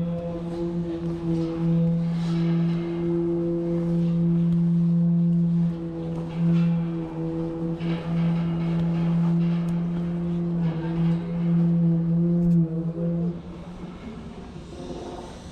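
Shoes clank on metal ladder rungs during a climb.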